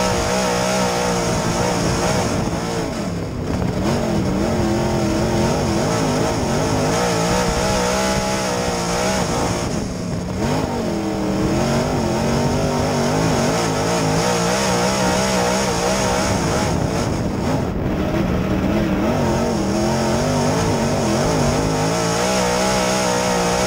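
A race car engine roars loudly up close, rising and falling in pitch as it speeds around the track.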